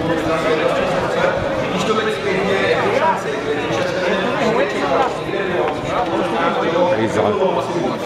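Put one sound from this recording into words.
A man answers up close.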